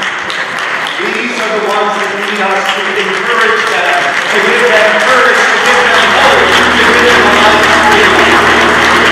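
A choir of children sings in a large echoing hall.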